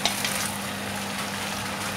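Diced potatoes and carrots tumble into an enamel pot.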